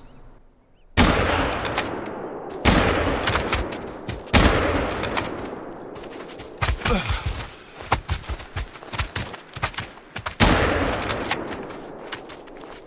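A rifle fires several loud shots that echo.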